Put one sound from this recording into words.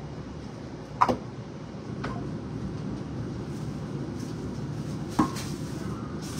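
Dishes clink against each other in a sink.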